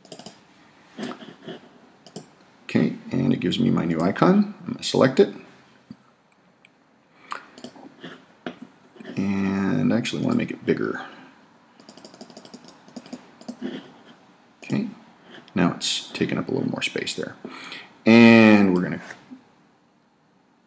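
A man speaks calmly and steadily, close to a microphone.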